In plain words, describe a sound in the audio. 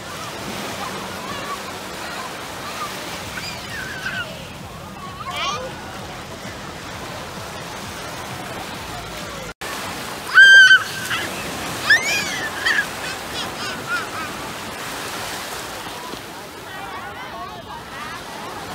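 Small waves wash and break on the shore.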